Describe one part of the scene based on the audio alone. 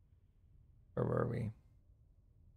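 A man says a few words briefly and calmly, close to a microphone.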